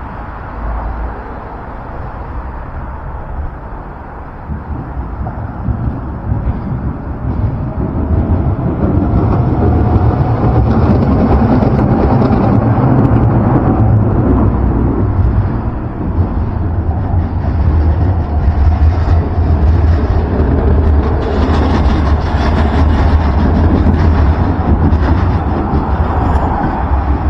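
City traffic rumbles steadily nearby, outdoors.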